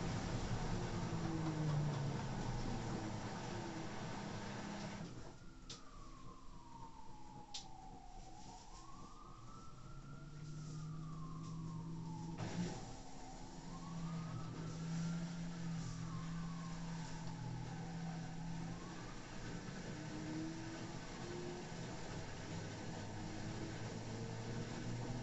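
A washing machine drum turns with a steady low hum.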